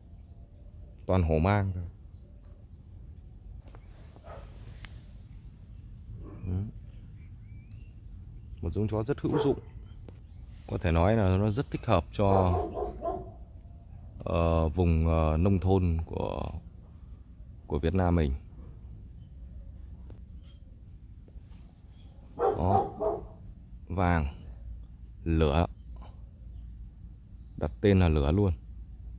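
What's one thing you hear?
A dog sniffs around in the grass.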